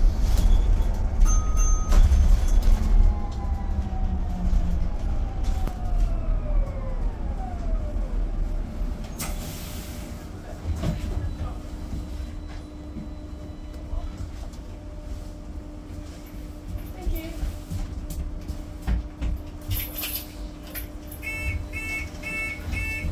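A bus engine rumbles low and winds down as the bus slows.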